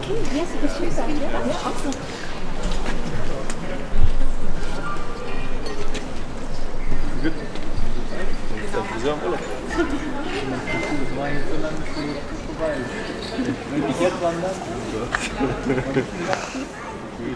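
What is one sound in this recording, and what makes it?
A woman sings from an open window, heard from outdoors.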